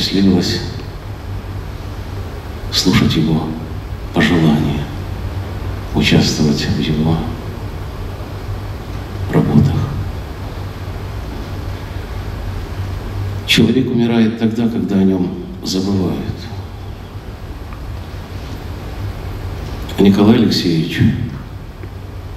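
A middle-aged man recites slowly through a microphone, with long pauses.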